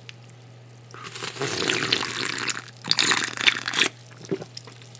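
A man gulps a drink loudly, close to the microphone.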